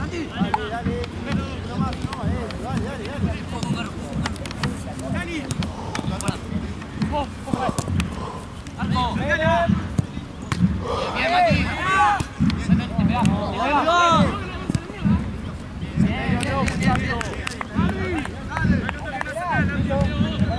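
A football thuds when kicked.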